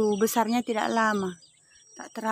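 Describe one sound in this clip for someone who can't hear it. A chicken clucks nearby.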